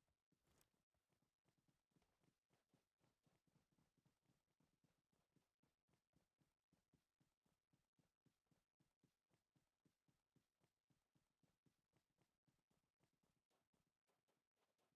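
Footsteps run quickly through dry grass.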